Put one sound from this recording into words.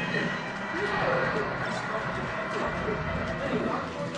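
Fighting game hits and effects sound in quick bursts.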